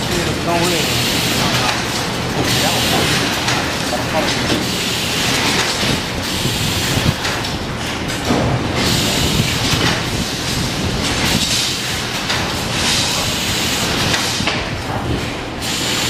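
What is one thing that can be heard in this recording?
A machine hums and clatters steadily nearby.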